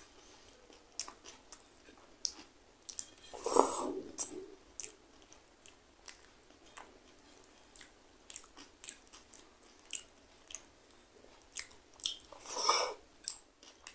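Fingers squish and mix soft rice on a plate.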